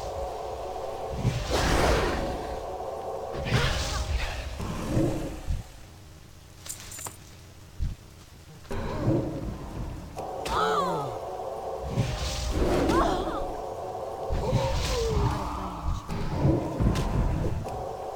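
Spells and weapon blows strike with loud whooshes and bursts.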